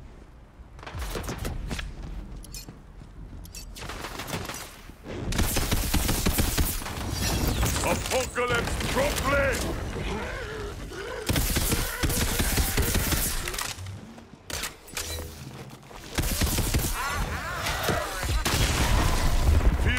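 A magic gun fires rapid crackling zaps.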